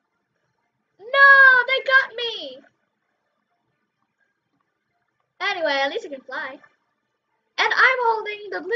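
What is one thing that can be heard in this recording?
A child talks with animation, close to a microphone.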